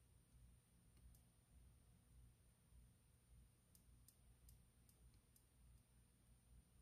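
Solder crackles and ticks faintly under a soldering iron.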